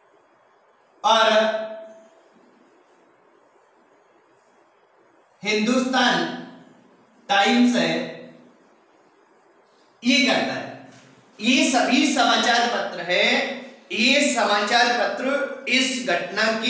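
A man speaks clearly and with animation into a close microphone, in short bursts.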